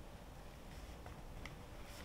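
A scraper taps down through dough onto a wooden board.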